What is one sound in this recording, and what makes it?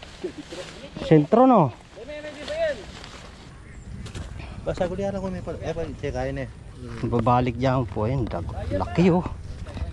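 A man talks casually nearby outdoors.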